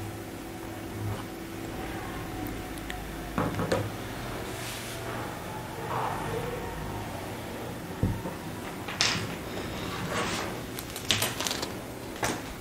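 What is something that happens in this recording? Fabric rustles and slides across a table.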